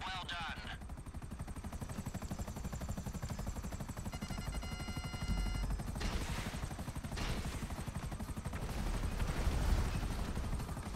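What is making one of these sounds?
A helicopter's rotor thumps rapidly and steadily.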